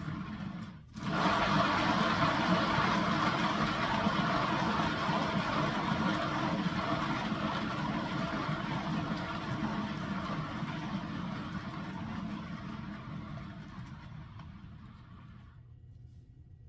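A spinning turntable whirs steadily, then slows and fades.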